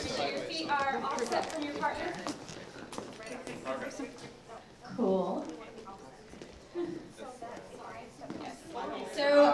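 A crowd of men and women chat in the background of a large room.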